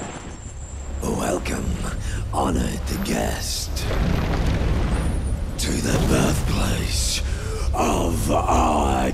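A man speaks in a deep, booming, theatrical voice.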